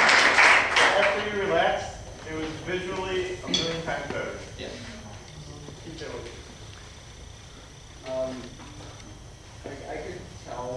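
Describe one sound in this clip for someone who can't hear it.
A young man speaks casually.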